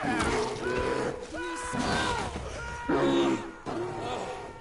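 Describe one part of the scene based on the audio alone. A bear growls and roars close by.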